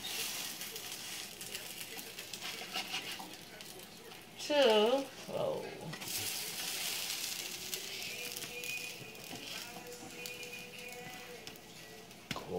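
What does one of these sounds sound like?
A spatula scrapes against a frying pan.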